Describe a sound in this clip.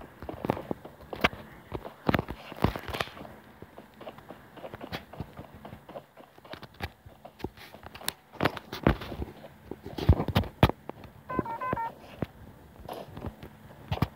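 Quick game footsteps patter as a character runs.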